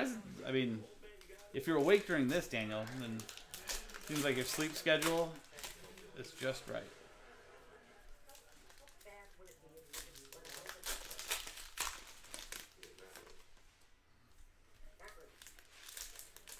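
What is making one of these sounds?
Foil card packs crinkle and tear as hands open them.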